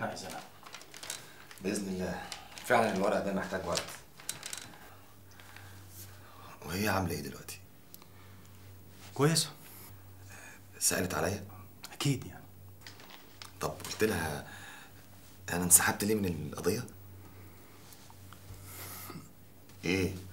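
A man speaks in a low, firm voice.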